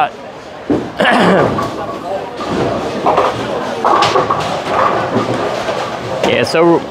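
Bowling balls rumble down wooden lanes in a large echoing hall.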